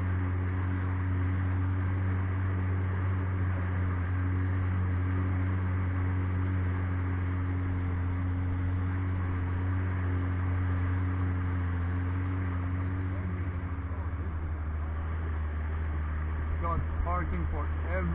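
A boat engine drones steadily close by.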